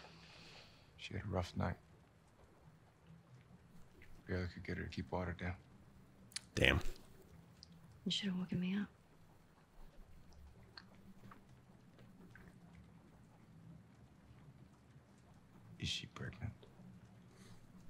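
A young man speaks quietly in a low voice.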